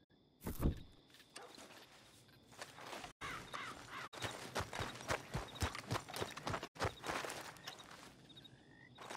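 Footsteps crunch on dirt and grass.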